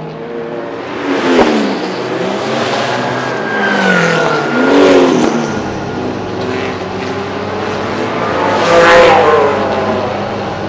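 A sports car speeds past close by with a roar that rises and falls.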